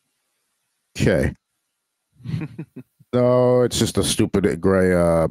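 A man speaks with animation into a close microphone over an online call.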